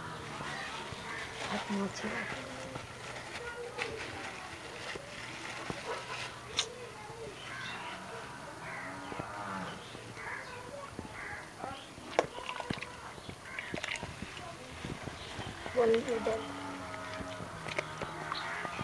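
A plastic bag crinkles and rustles in a man's hands.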